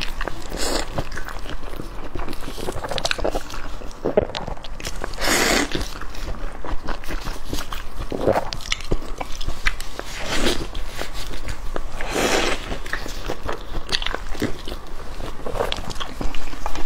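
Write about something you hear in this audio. A young woman slurps and smacks her lips close to a microphone.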